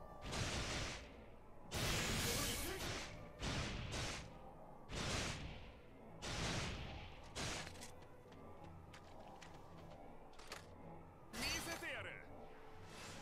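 Magic blasts and explosions burst in loud whooshing bursts.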